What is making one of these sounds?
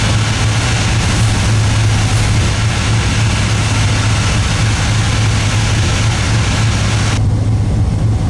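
A steam locomotive hisses steadily.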